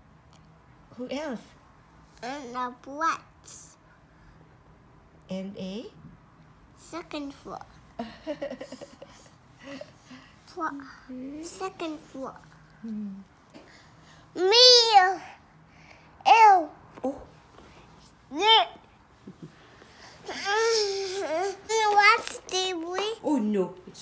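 A toddler boy talks in a high voice close by, in short bursts.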